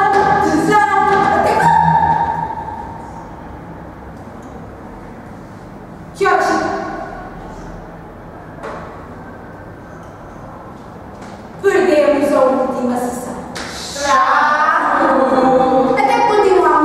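A young woman speaks loudly and dramatically in an echoing room.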